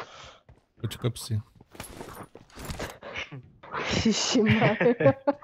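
Footsteps thud on hollow metal.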